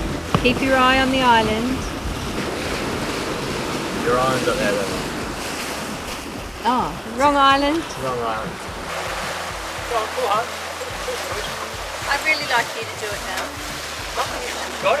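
Waves wash against a boat's hull.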